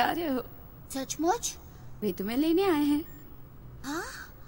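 A young boy answers in a bright, lively voice up close.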